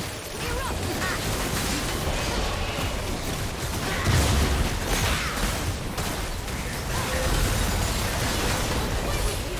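Video game spells blast and crackle in a busy fight.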